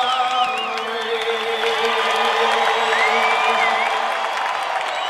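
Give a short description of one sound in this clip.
A man sings a long held note into a microphone, echoing over loudspeakers.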